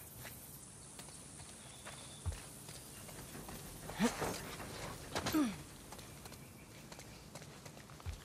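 Footsteps splash on wet ground.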